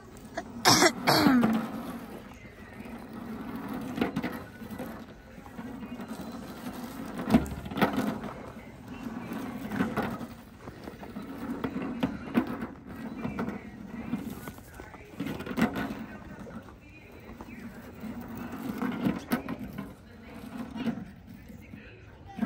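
A sled slides over snow in the distance.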